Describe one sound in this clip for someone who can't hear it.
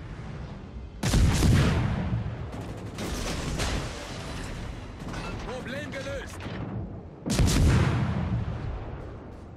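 Heavy naval guns fire with deep, loud booms that rumble away.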